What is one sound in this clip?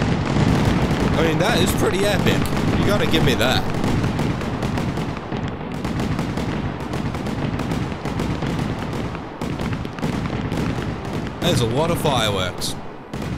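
Fireworks crackle and pop overhead.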